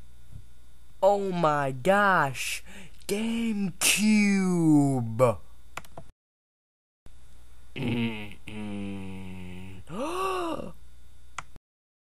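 A young man talks excitedly in a high, exaggerated voice.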